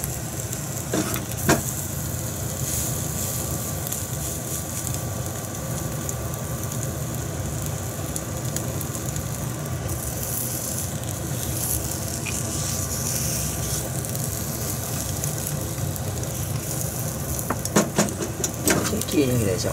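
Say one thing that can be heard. A metal pan clatters on a stove grate.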